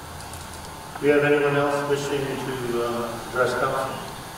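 A man speaks calmly into a microphone over loudspeakers in a large echoing hall.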